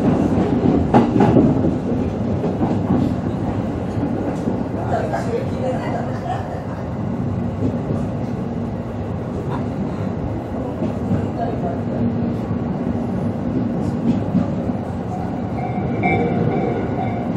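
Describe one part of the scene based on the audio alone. A train rumbles steadily along the rails, wheels clacking.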